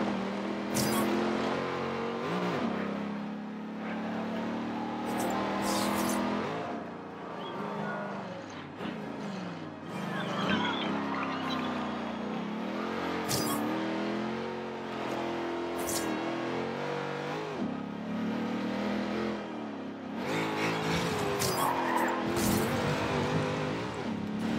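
A sports car engine roars and revs up and down through the gears.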